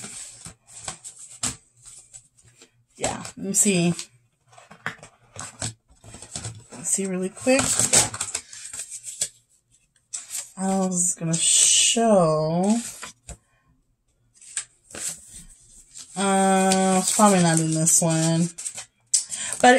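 Paper and card packaging rustles and crinkles in hands.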